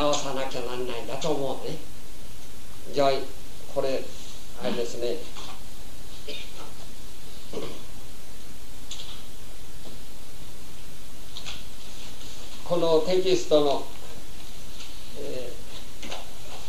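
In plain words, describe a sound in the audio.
A man speaks calmly outdoors, close by, in short phrases.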